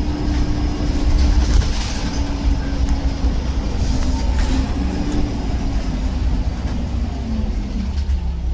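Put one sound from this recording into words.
A bus rattles and creaks as it drives along.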